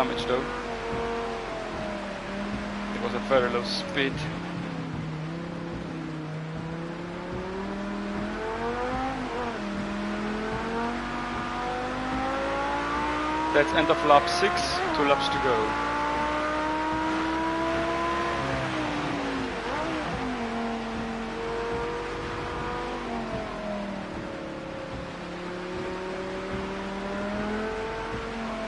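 A racing car engine roars, rising and falling in pitch as it speeds up and slows down.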